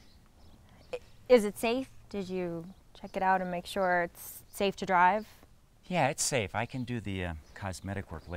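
A young woman speaks with animation nearby.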